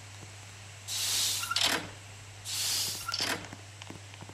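A heavy sliding door opens with a hiss.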